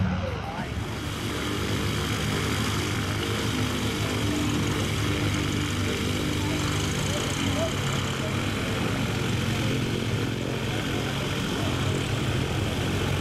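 A small propeller plane's engine idles and rumbles close by.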